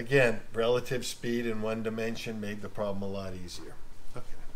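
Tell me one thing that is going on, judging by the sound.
An older man speaks calmly nearby.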